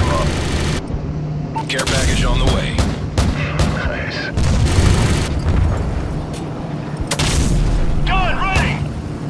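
Heavy cannon shells explode on the ground below with deep booms.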